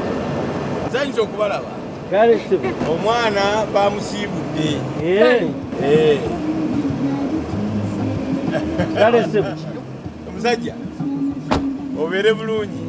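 An older man talks with animation outdoors.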